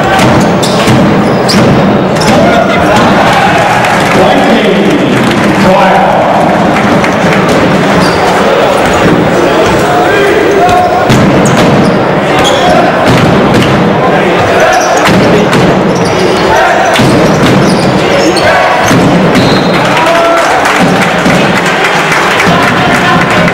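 Basketballs bounce on a hardwood court.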